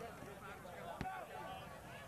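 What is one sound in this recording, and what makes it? A ball is kicked with a hollow thump.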